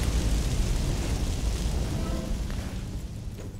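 Flames roar and crackle loudly, then die away.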